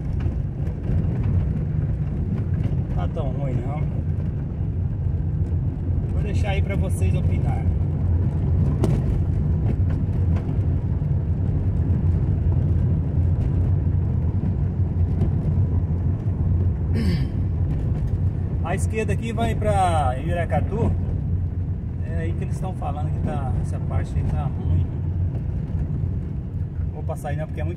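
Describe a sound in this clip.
A car engine rumbles steadily up close.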